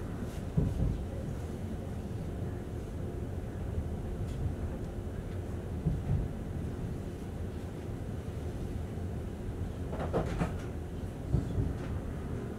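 Train wheels clatter and knock over rail joints.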